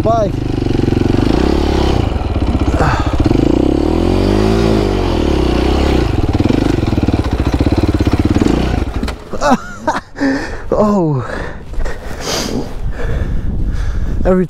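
A dirt bike engine chugs and revs up close.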